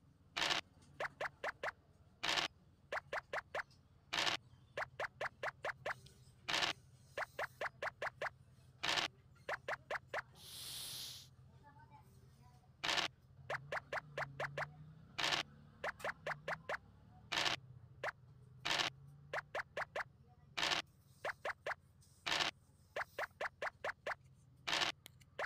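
Game pieces tick quickly as they hop from square to square.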